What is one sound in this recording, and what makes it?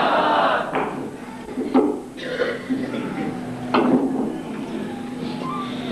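Knocks and bumps of a microphone being handled ring out through a loudspeaker.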